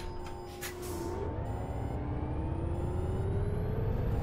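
A diesel city bus engine revs up as the bus pulls away.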